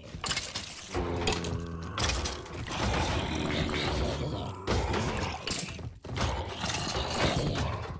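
Zombie villagers groan.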